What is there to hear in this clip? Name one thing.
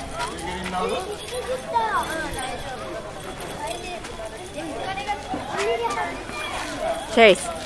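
A crowd of adults and children chatter nearby outdoors.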